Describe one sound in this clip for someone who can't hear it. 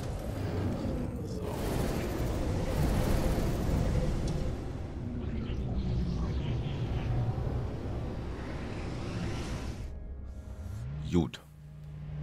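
A spacecraft engine roars and hums steadily.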